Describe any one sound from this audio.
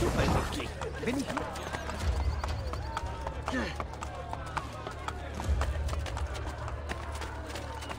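Horse hooves clatter on stone paving.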